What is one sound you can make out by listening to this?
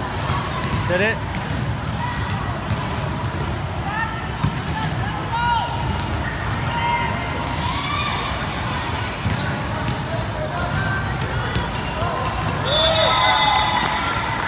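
A volleyball is slapped by a hand several times.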